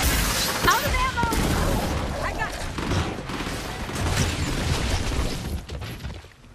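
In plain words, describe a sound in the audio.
Gunfire crackles in loud bursts.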